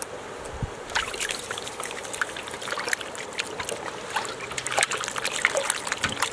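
Hands rub and squelch meat in a metal bowl of water.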